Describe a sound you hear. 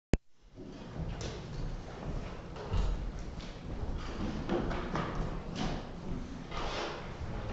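Footsteps pad softly across the floor.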